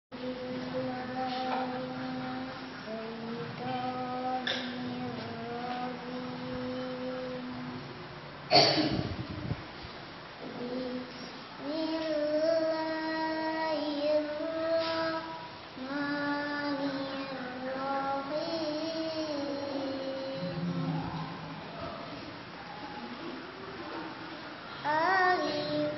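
A young girl chants close by in a steady, drawn-out voice.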